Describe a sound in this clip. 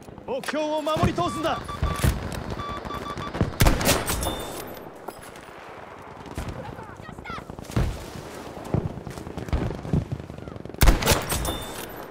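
A rifle fires sharp, loud shots now and then.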